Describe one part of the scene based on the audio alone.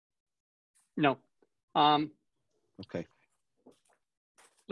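A man speaks in short bursts through an online call microphone.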